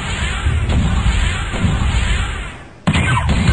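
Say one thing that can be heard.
Explosions rumble.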